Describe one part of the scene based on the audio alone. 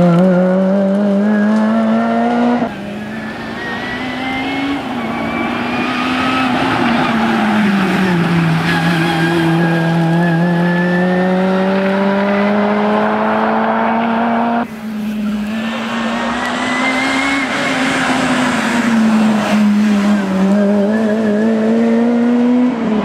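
A rally car engine revs hard and roars past, its pitch rising and falling as the gears change.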